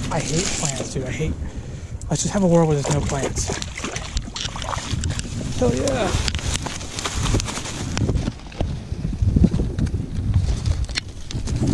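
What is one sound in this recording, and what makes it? Dry reeds rustle and crackle as a hand pushes through them.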